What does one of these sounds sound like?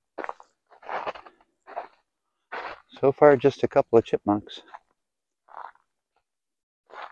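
Dry leaves crunch underfoot with slow footsteps.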